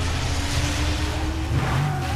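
A car smashes through a wooden fence with a crash.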